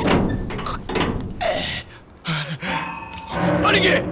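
A heavy metal wheel creaks as it turns.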